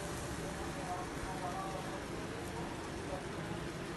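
Liquid pours into a pan.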